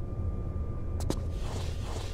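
A sharp knock sounds as a hand grabs a stone ledge.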